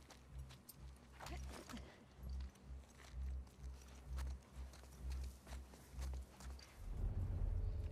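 Soft footsteps thud on the ground at a steady pace.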